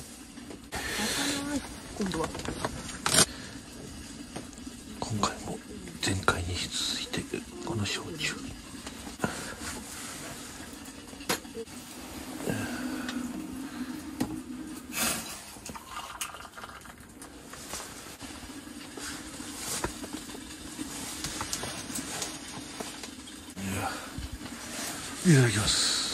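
A wood fire crackles close by.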